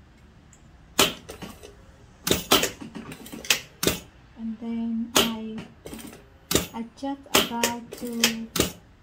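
A sewing machine clacks and knocks sharply.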